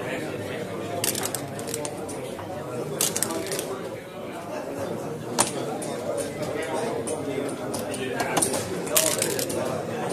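A game clock is pressed with a sharp click.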